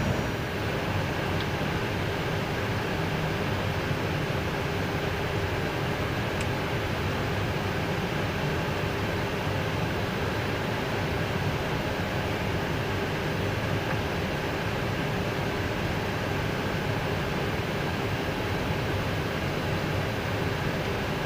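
Aircraft tyres rumble over the pavement.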